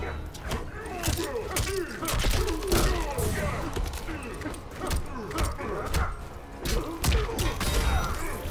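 Punches and kicks land with heavy thuds and cracks.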